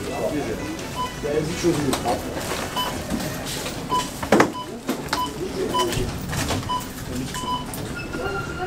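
A checkout scanner beeps repeatedly.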